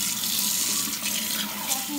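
Hands squish and rub wet leaves.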